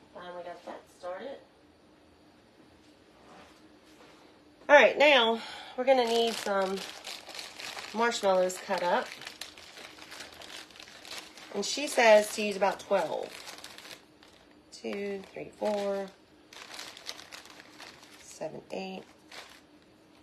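A middle-aged woman talks calmly close by.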